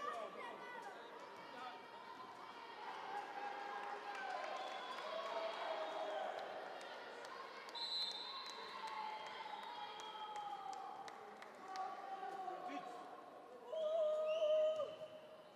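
Sneakers squeak sharply on a floor in a large echoing hall.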